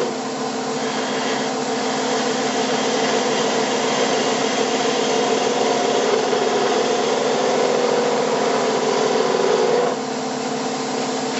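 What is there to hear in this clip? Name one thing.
A wood lathe hums steadily as it spins.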